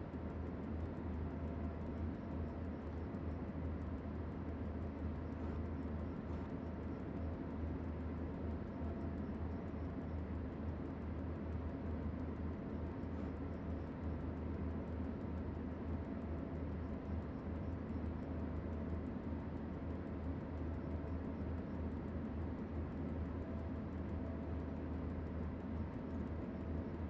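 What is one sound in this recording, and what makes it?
Train wheels clatter rhythmically on the rails.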